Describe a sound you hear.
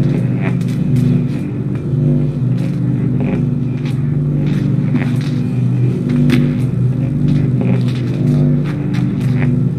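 A small child's footsteps and scrapes sound on a metal filing cabinet.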